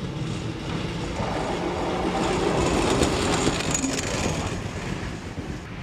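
A tram rattles past close by on its rails.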